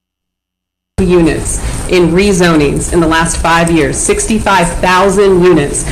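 A woman speaks calmly into a microphone, heard over a loudspeaker.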